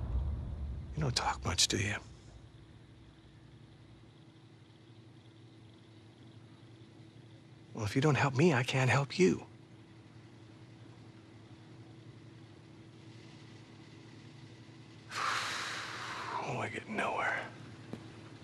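A middle-aged man speaks calmly and quietly.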